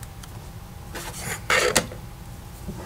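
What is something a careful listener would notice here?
Calculator buttons click.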